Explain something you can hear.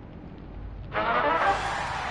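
A bright game sound effect bursts out loudly.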